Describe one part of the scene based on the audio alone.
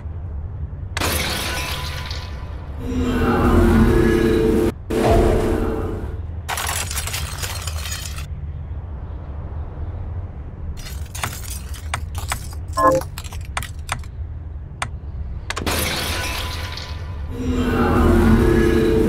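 Glass shatters loudly into tinkling pieces.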